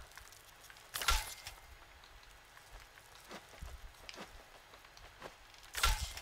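A wooden bat swishes and thuds against a giant insect.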